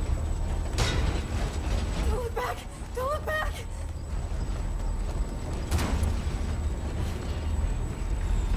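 Hurried footsteps run across a wooden floor.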